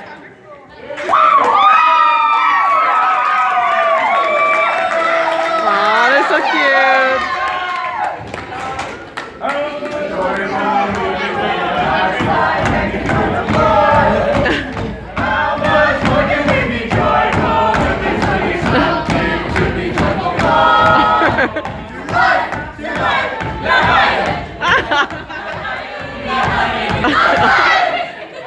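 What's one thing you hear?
A group of young men and women sing loudly together in a large hall.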